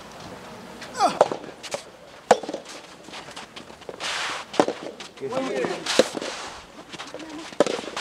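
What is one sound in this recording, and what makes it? A tennis ball is struck sharply by a racket, several times.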